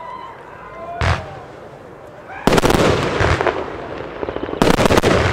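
Fireworks burst and crackle loudly outdoors.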